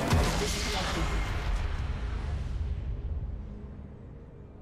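A loud explosion booms and rumbles, then fades away.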